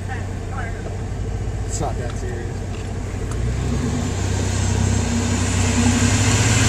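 A car engine rumbles close by and grows louder.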